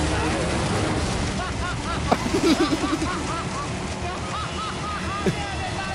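An elderly man laughs heartily close by.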